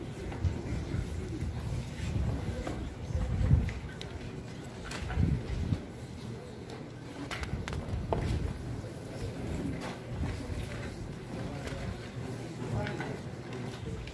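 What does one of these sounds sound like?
A crowd murmurs quietly in a large room.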